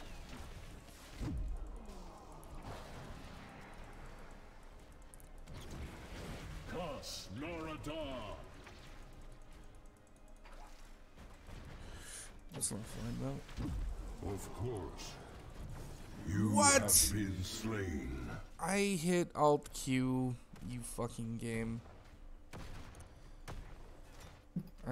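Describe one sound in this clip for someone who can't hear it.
Game spells and attacks burst and crackle.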